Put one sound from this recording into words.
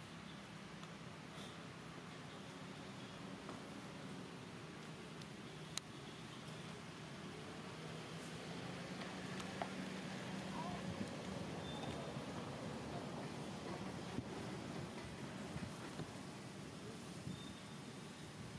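Leaves rustle as a baby monkey climbs through branches.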